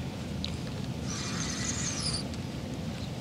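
A fishing line whirs briefly off a reel during a cast.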